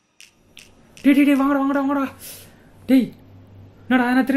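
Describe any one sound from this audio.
A young man speaks loudly and forcefully nearby.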